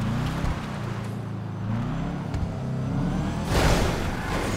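A car engine revs and hums as the car drives.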